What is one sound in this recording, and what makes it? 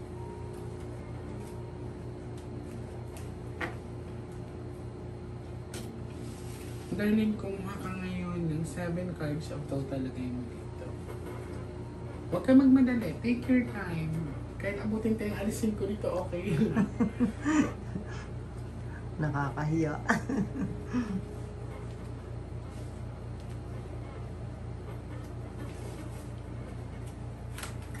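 Cards shuffle and slide on a cloth.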